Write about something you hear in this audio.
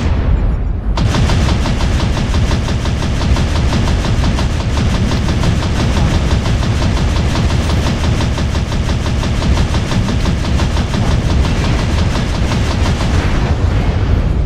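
Rapid machine-gun fire rattles on and on.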